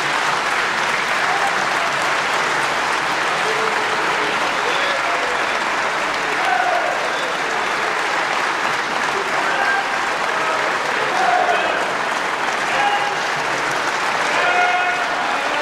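Many men cheer and shout together.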